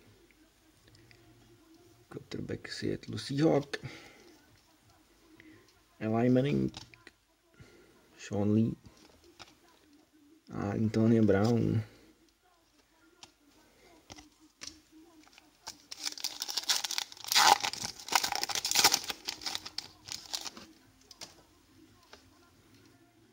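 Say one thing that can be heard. Trading cards slide and flick against each other as they are handled.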